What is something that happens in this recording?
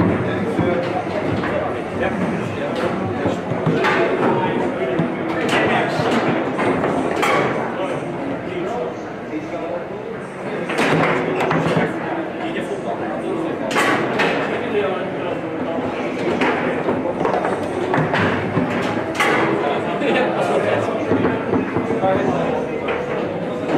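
Foosball rods rattle and clack as players jerk and spin them.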